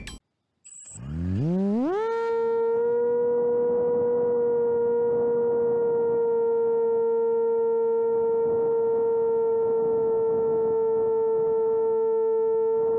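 A small electric propeller motor whines up in pitch and then holds a steady high hum.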